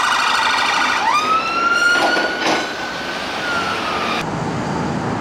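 A siren rises into a long, steady wail and then slowly drops.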